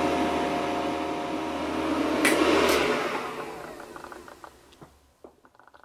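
An appliance motor hums and whirs steadily, then winds down.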